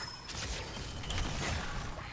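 Fiery explosions burst and crackle.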